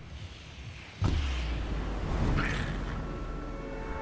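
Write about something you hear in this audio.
A sudden whoosh sounds as a figure leaps from a flying bus.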